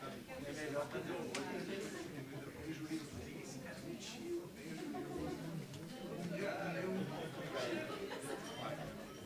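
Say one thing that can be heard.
A crowd of men and women chatter at once in a room.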